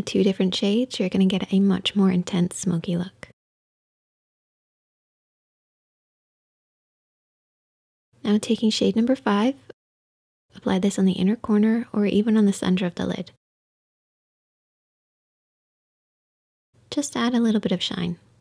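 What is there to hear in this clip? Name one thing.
A young woman speaks calmly and close to a microphone, in short bursts.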